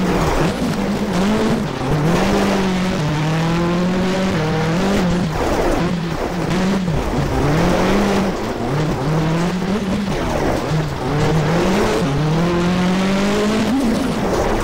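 A car engine revs up and down through the gears.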